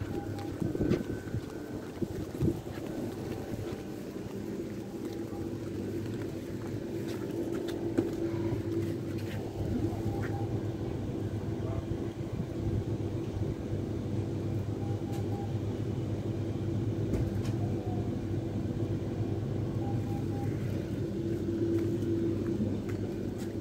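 A train's engine hums steadily nearby.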